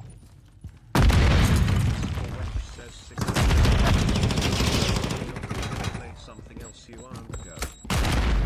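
Gunfire rattles in loud rapid bursts.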